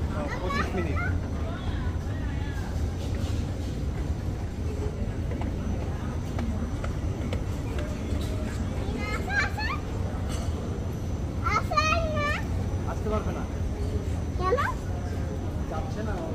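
A moving walkway hums with a steady low rumble.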